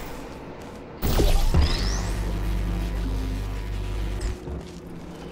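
A low electronic hum drones steadily, then cuts off.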